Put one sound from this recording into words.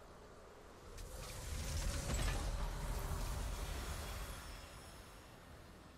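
A triumphant game fanfare swells and then fades.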